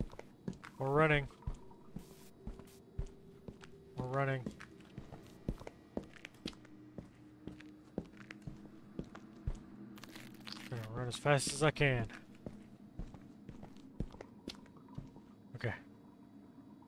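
Footsteps tap steadily on a hard tiled floor.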